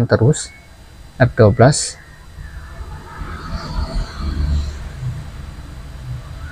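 A finger presses a laptop key with a soft click.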